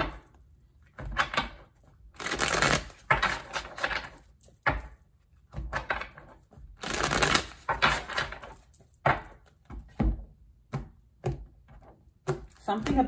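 Cards are shuffled and riffled by hand with quick papery rustling.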